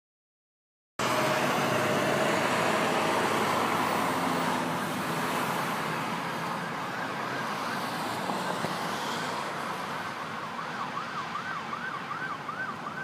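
Traffic rumbles steadily along a busy road nearby.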